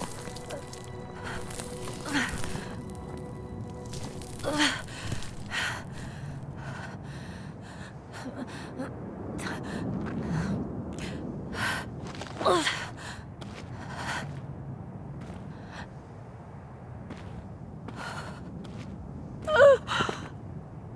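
Footsteps crunch on soft ground.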